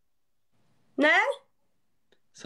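A young woman exclaims briefly in a high voice over an online call.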